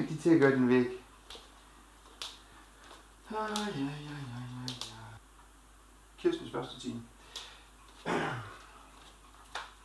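Footsteps walk softly across a wooden floor.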